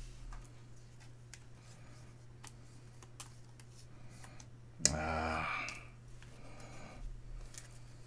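Cards rustle and slide in a man's hands.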